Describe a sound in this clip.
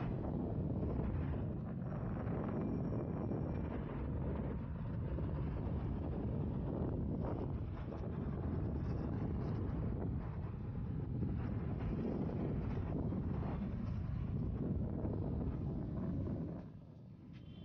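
Skateboard wheels rumble steadily over concrete.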